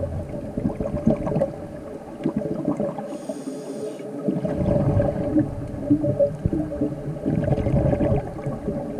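Water murmurs and crackles in a muffled underwater hush.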